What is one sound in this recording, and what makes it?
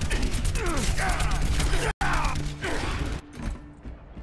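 Rapid game gunfire and blasts ring out.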